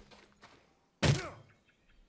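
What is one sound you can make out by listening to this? An axe strikes a tree trunk with a single sharp thud.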